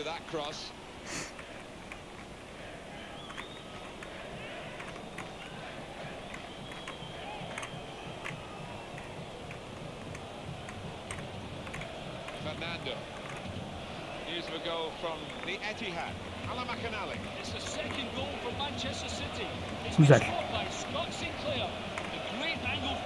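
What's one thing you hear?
A crowd murmurs steadily from a football game.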